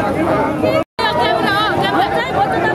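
Several young women shout slogans close by.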